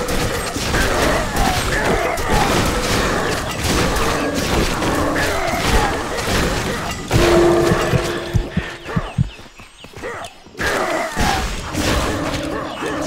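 Blades strike and clash rapidly in a fight.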